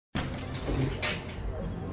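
A door opens with a creak.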